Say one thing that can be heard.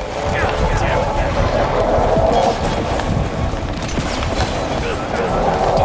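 Gunfire and impacts burst in quick succession.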